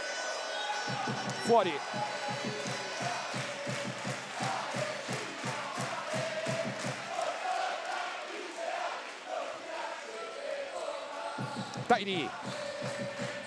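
A crowd cheers and murmurs in a large echoing arena.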